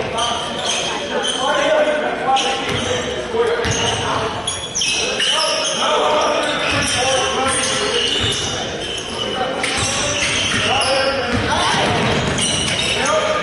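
Spectators chatter nearby in an echoing hall.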